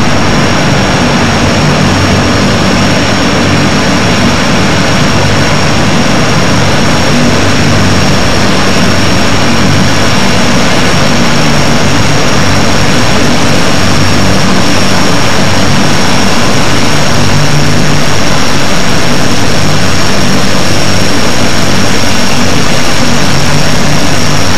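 Turboprop engines roar loudly and steadily as a large plane takes off.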